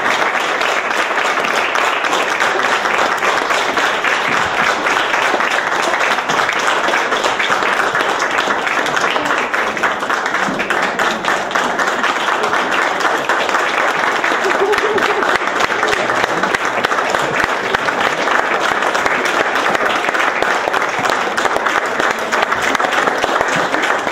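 An audience applauds steadily in an echoing hall.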